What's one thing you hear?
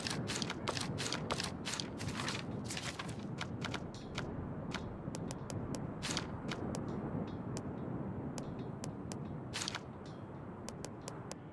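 Short menu clicks tick in quick bursts.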